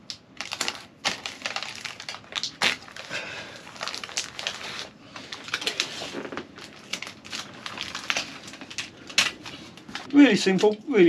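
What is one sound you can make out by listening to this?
Adhesive tape tears and crinkles as it is pulled off a roll.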